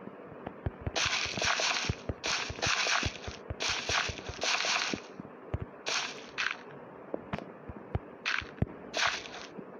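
Short scraping bursts of digging in dirt come one after another.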